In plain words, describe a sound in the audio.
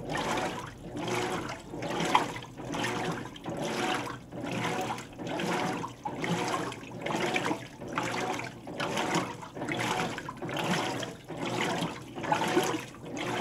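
Water sloshes and churns in rhythmic surges as a washing machine agitates.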